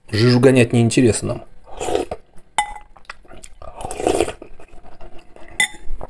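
A spoon clinks and scrapes in a glass bowl.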